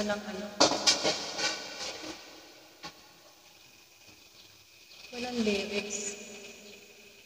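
A woman speaks close into a microphone with animation.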